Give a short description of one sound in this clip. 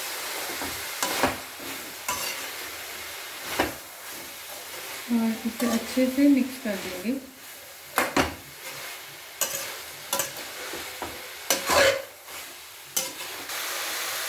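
A metal spatula scrapes and knocks against a pan as vegetables are stirred.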